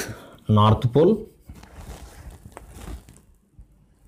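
A man speaks calmly and close by.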